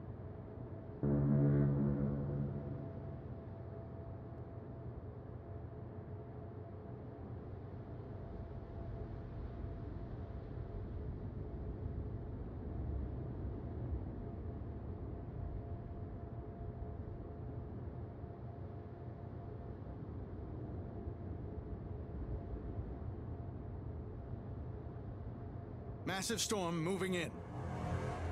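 A large ship's engine rumbles steadily.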